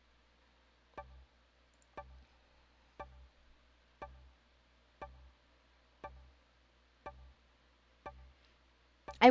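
A countdown timer ticks steadily once a second.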